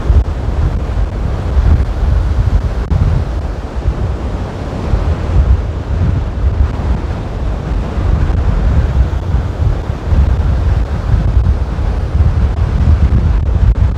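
Waves wash and break on the shore.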